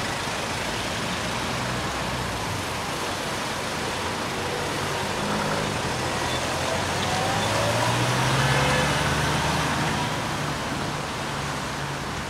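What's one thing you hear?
A car engine rumbles as a vehicle drives by close.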